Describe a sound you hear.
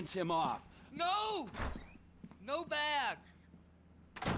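An elderly man shouts angrily.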